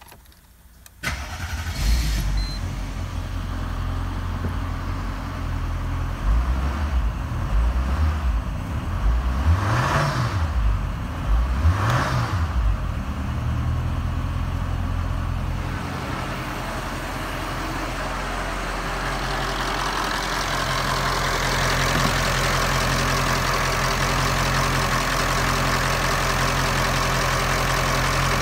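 A car engine starts and idles with a steady rumble.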